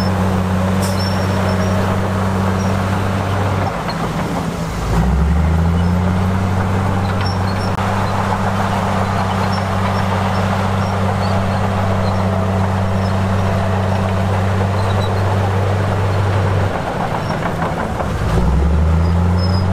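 Bulldozer tracks clank and squeak on dirt.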